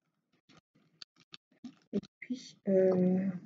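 A pen tool taps and clicks softly on small plastic beads.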